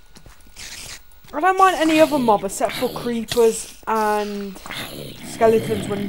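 A zombie groans nearby.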